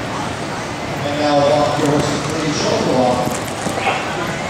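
A woman speaks over a loudspeaker in a large echoing hall.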